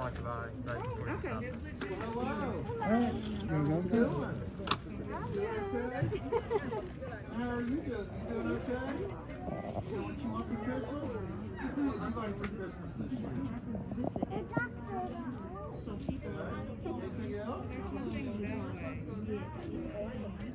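Several adults talk and chatter nearby outdoors.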